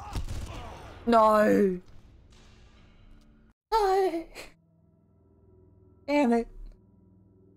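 A young man exclaims loudly into a close microphone.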